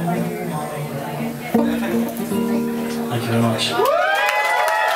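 An acoustic guitar strums chords through loud speakers.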